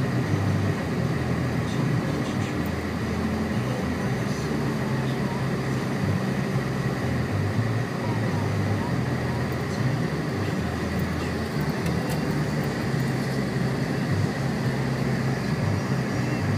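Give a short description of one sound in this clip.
Tyres crunch and rumble over packed snow.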